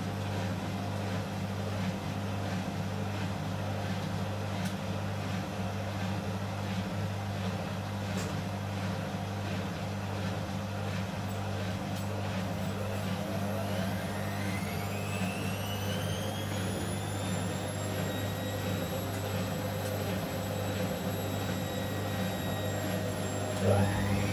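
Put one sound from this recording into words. A washing machine hums and rumbles as its drum spins.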